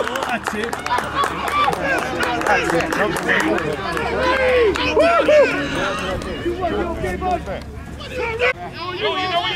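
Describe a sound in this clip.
A crowd of adults and children cheers and shouts loudly nearby outdoors.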